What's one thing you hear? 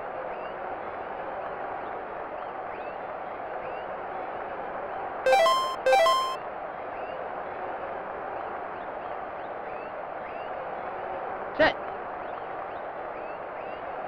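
A stadium crowd roars steadily in the background.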